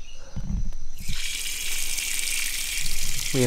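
Water sprays hissing from a tap.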